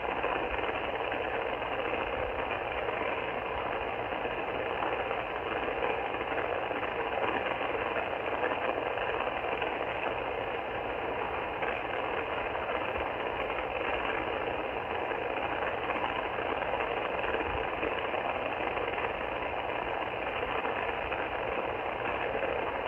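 Static hisses steadily from a radio receiver's speaker.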